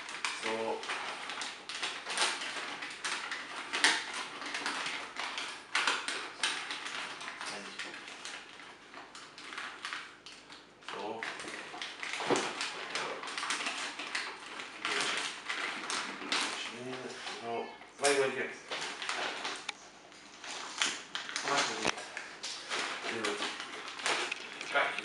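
Wrapping paper crinkles and rustles as it is folded by hand.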